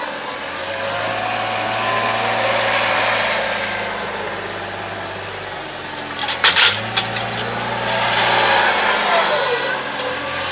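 Hydraulics whine as a loader lifts a hay bale.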